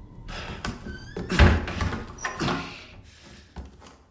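A heavy wooden door bangs and creaks open.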